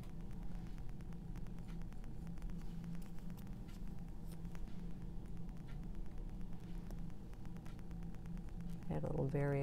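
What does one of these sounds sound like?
A paintbrush dabs and brushes softly on canvas.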